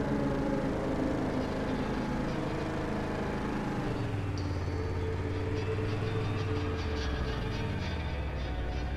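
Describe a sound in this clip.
Tyres roll over a rough road.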